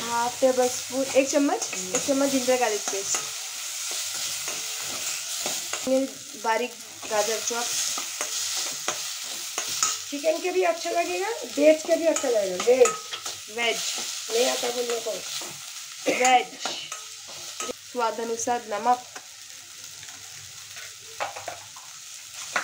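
A metal spoon scrapes and clinks against a steel pan.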